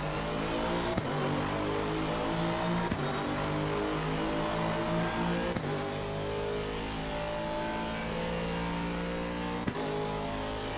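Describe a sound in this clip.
A gearbox clicks sharply as the racing car shifts up.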